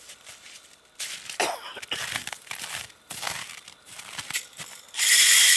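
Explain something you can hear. Boots crunch on packed snow.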